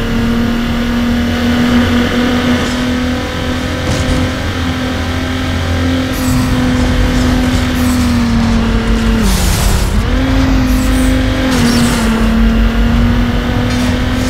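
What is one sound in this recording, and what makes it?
A car engine roars at high revs, dropping in pitch briefly before climbing again.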